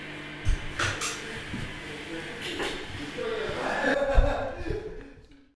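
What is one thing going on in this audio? An electric bass guitar plays.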